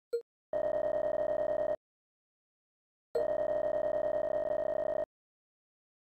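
Rapid electronic blips chatter in quick bursts.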